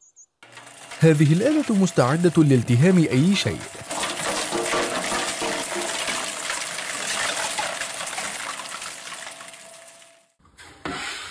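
A shredder grinds and crunches plastic toys.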